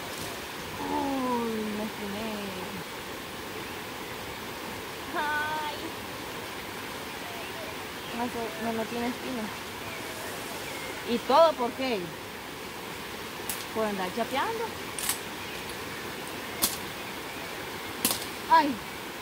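A young woman talks calmly nearby, in short phrases.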